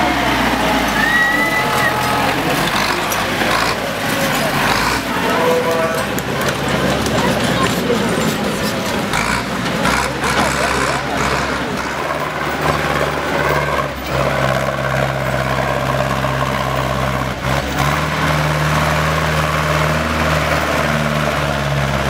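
A tractor engine roars and labours loudly outdoors.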